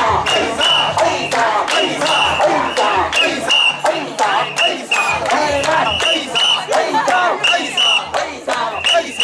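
Metal rings on a portable shrine jingle as it is rocked.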